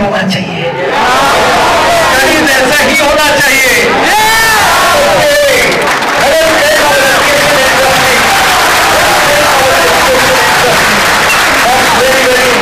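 A man sings loudly through a loudspeaker in a large hall.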